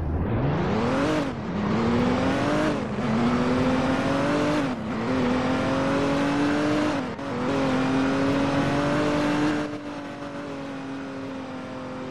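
A car engine revs hard, rising in pitch and dropping back with each gear change.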